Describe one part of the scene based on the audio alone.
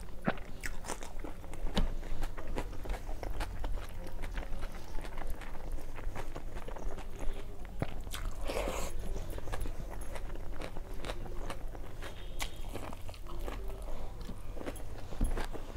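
Fingers squish and mix rice and curry on a steel plate.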